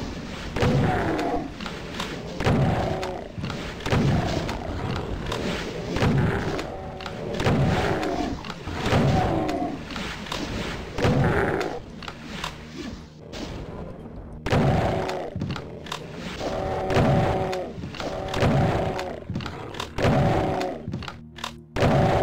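Monsters growl and groan in pain.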